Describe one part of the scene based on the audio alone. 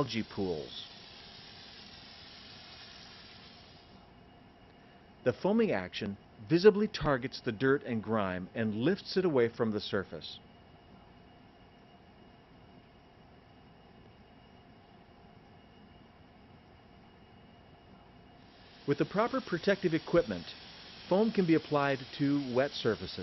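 A foam applicator hisses as it sprays foam.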